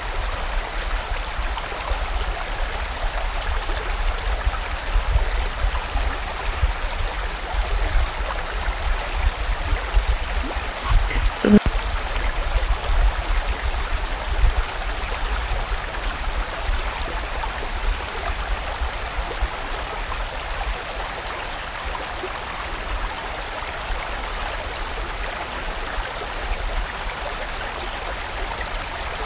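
A stream rushes and gurgles steadily over rocks.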